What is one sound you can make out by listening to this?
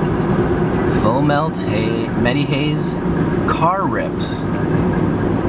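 Water bubbles and gurgles in a glass pipe.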